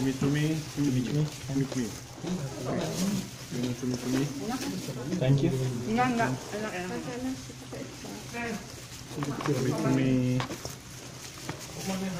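Plastic wrap crinkles as hands handle food.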